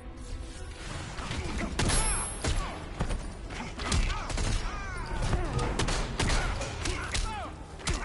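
Heavy punches and kicks land with sharp, thudding impacts.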